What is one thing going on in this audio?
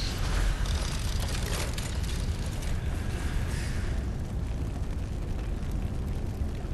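A low rumbling drone hums steadily.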